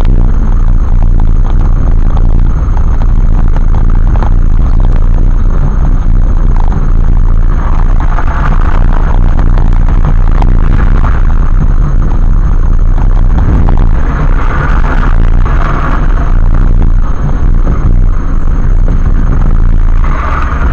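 Wind and road noise rumble loudly inside a moving car.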